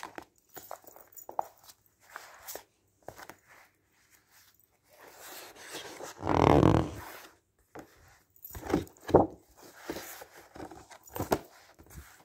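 Magazines slide and thump softly onto a stack.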